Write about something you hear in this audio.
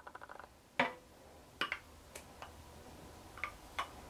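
Sauce pours and splatters into a pot.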